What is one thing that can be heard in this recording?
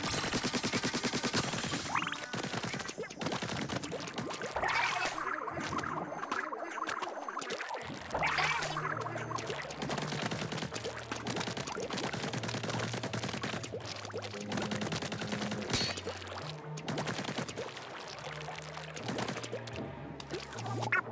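Liquid ink squirts and splatters wetly.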